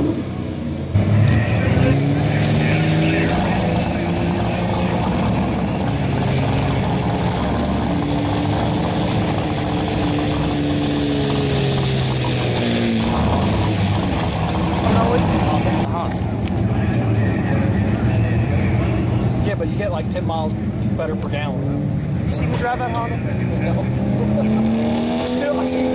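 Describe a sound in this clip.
A diesel truck engine roars loudly under heavy strain, its pitch rising and falling.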